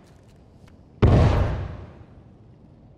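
A blast of fire bursts nearby.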